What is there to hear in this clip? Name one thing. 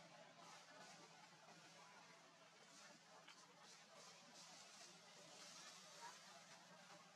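Dry leaves rustle as a monkey moves through the undergrowth.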